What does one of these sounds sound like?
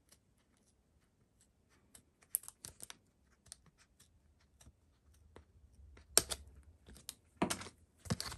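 Scissors snip through a thin plastic sheet.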